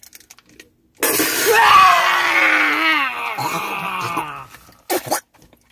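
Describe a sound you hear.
A woman cries out in distress.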